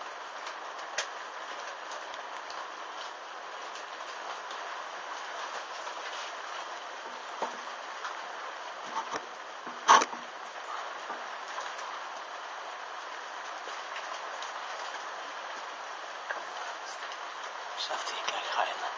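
Burning fabric crackles and hisses steadily.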